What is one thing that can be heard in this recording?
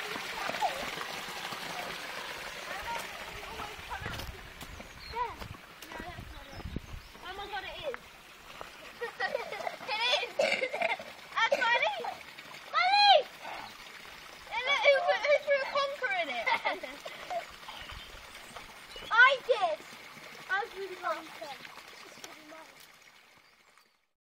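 Water trickles gently in a shallow stream.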